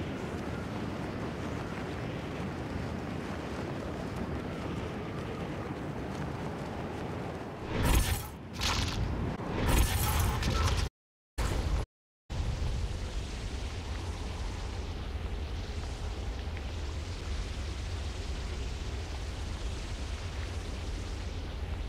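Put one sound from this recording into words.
Wind rushes steadily past a gliding character.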